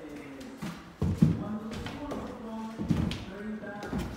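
Footsteps thud on stairs.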